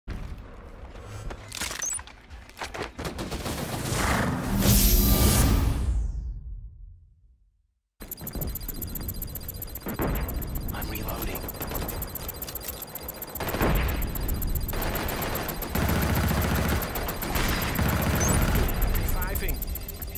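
Rapid gunfire bursts out in short volleys.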